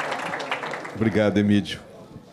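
Another middle-aged man speaks briefly into a microphone.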